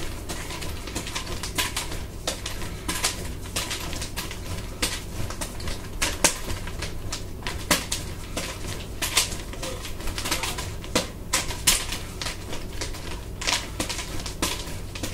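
Nunchaku sticks clack and slap against bare skin as they are swung.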